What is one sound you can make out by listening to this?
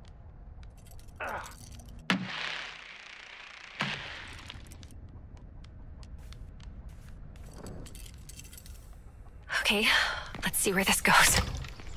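Fists bang on a wooden door.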